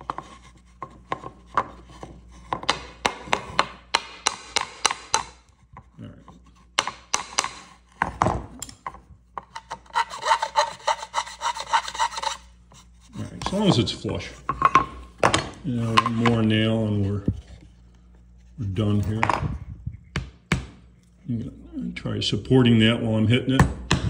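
A hammer taps nails into wood.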